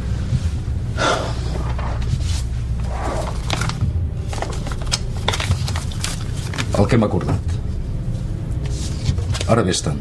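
An older man speaks in a low, calm voice nearby.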